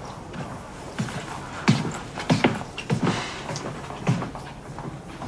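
Footsteps knock on a hard floor.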